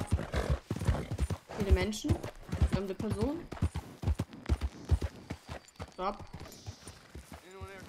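Horse hooves thud steadily on a dirt road.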